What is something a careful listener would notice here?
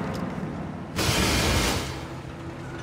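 A heavy metal door unlatches and swings open.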